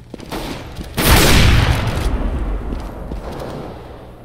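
A rifle fires a single loud shot that booms and echoes away.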